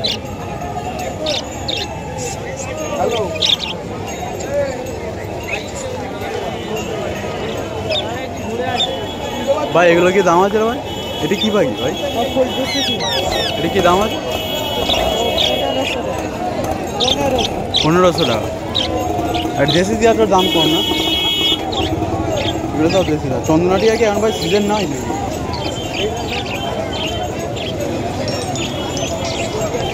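A crowd of people chatters outdoors in a busy open space.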